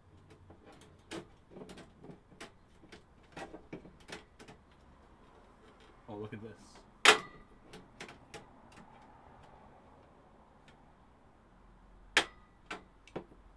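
Plastic parts knock and click sharply.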